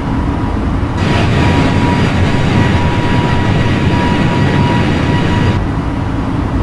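Jet engines roar loudly as an airliner flies past outside.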